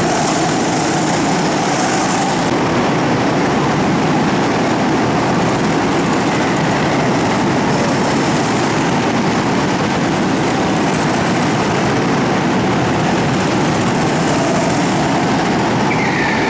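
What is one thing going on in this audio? Go-kart engines buzz loudly in a large echoing hall.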